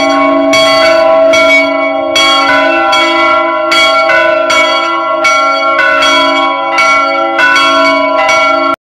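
Several church bells ring together outdoors, clanging in a quick, repeating rhythm with a long ringing tone.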